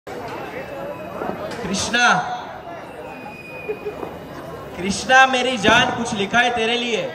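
A young man speaks with animation through a microphone and loudspeakers.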